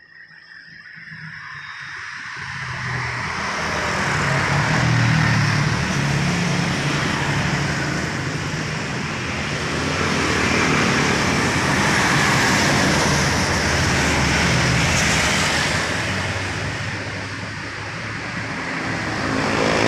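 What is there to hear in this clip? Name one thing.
Cars and motorbikes drive past on a road nearby.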